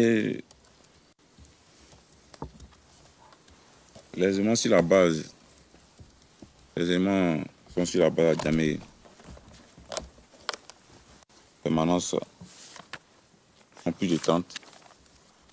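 A young man speaks into a microphone in short bursts with pauses.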